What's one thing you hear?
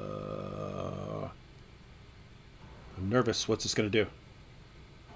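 A man speaks calmly and briefly, close to a microphone.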